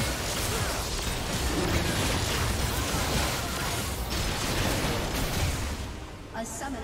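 Spell blasts and weapon hits clash in a loud fight.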